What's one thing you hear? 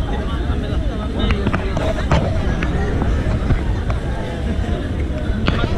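A crowd chatters loudly all around, close by.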